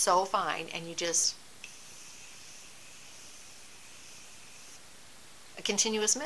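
A middle-aged woman speaks calmly close to a microphone.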